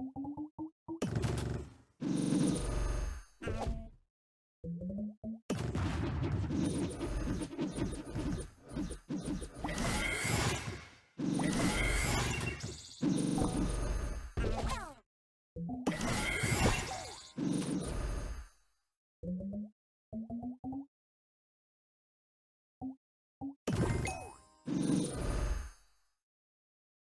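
Bright chimes and pops ring out as game pieces burst.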